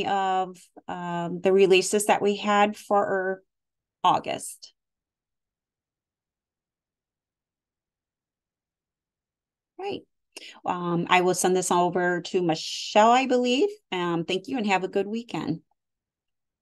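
A woman speaks calmly through an online call microphone.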